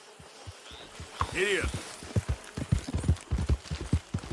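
A horse gallops, its hooves pounding the ground.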